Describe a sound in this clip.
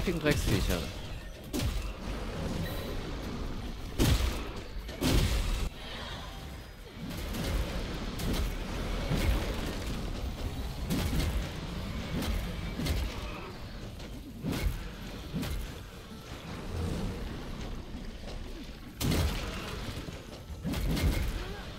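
Heavy blows and explosions thud and boom again and again.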